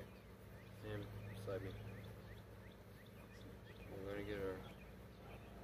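A young man talks casually nearby.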